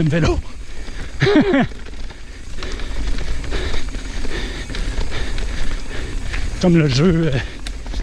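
A bicycle frame rattles over bumps.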